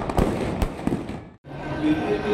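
Fireworks pop and crackle in the air.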